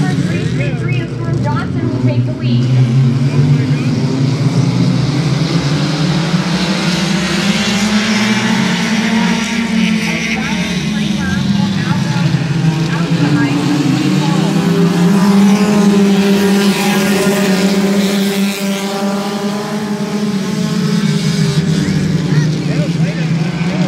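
Race car engines roar loudly around a track nearby.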